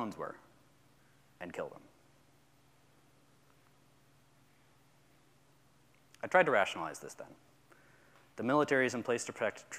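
A young man speaks calmly into a microphone in a large room, with pauses.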